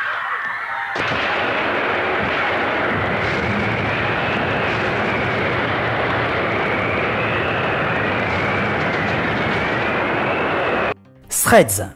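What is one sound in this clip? An explosion roars and rumbles steadily.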